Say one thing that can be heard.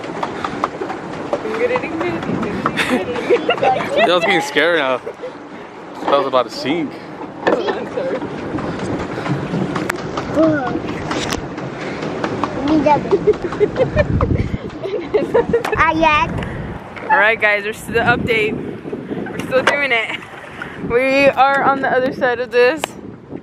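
A young woman talks and laughs cheerfully close by.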